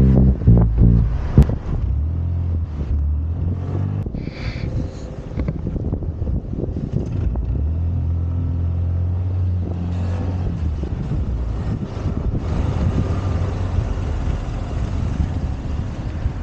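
Wind buffets the microphone with a low rumble.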